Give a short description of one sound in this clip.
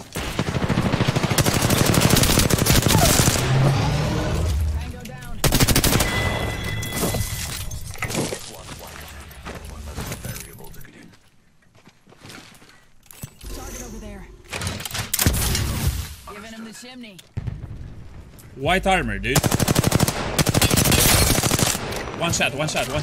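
Rapid gunfire crackles in loud bursts.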